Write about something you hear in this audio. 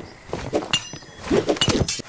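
A pickaxe knocks sharply against wooden barrels.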